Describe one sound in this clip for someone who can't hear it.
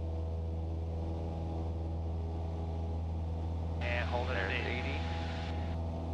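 A small propeller plane's engine drones loudly and steadily.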